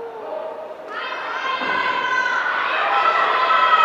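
Spectators shout and cheer loudly as a boxing bout begins.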